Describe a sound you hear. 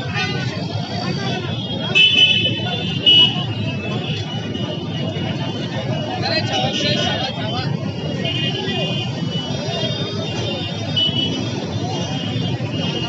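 A crowd of men talks and murmurs outdoors.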